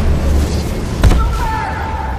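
A single loud blast booms.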